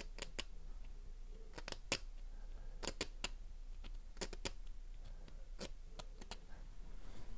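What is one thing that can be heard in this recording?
Small metal parts click and snap together in the hands.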